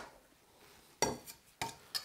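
A spatula scrapes against a bowl.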